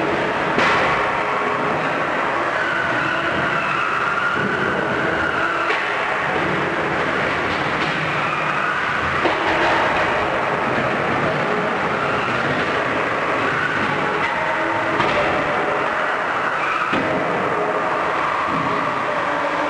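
Metal combat robots crash and scrape against each other.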